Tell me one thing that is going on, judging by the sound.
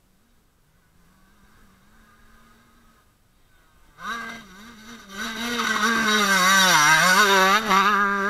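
A dirt bike engine approaches from afar and roars loudly as it passes close by.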